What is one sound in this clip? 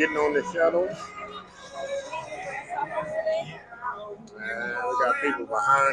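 Adult men and women chatter close by.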